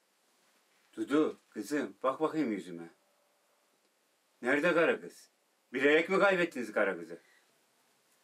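An older man speaks firmly in a low voice.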